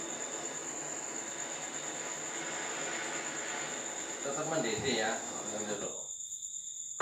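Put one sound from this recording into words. A gas torch hisses and roars steadily.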